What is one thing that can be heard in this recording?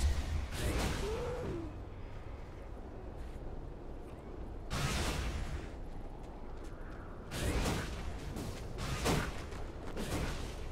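Fantasy game combat effects whoosh and crash in short bursts.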